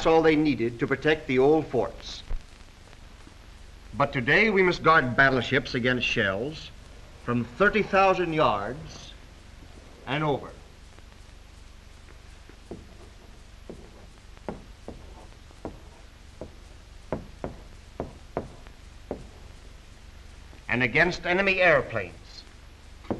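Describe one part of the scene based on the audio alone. A man speaks calmly and clearly, as if lecturing.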